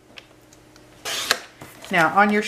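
A paper trimmer blade slides and cuts through card.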